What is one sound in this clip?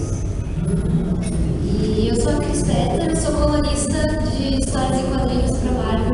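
A second young woman speaks into a microphone, heard over a loudspeaker.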